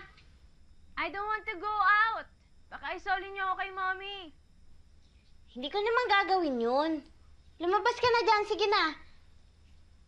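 A young woman calls out loudly in a high, pleading voice.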